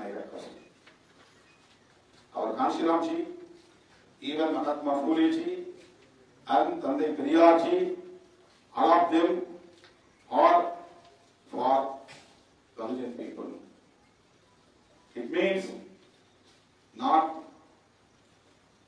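A middle-aged man speaks emphatically into a microphone, in short bursts with pauses.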